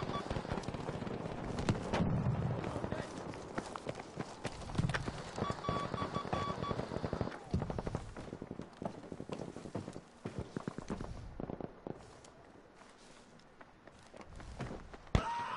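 Gunshots crack repeatedly nearby.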